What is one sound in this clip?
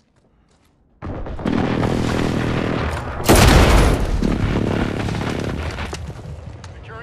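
A rifle fires rapid bursts of shots, echoing loudly.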